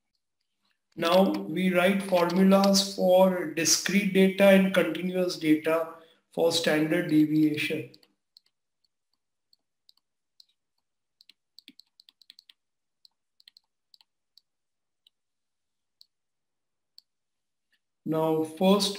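A man speaks calmly through a microphone, close by.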